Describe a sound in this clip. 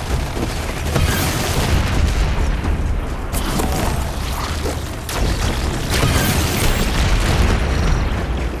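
Energy blasts boom and crackle.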